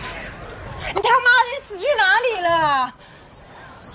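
A young woman asks a question in an upset, pleading voice, close by.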